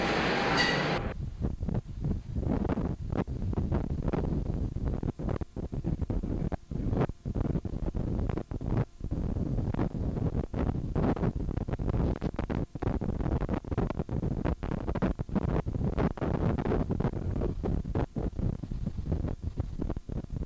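Wind gusts hard across the microphone outdoors.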